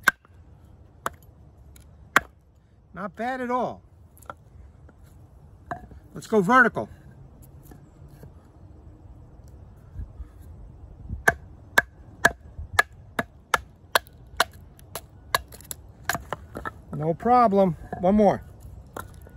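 A wooden mallet knocks sharply on the back of a knife blade, splitting wood.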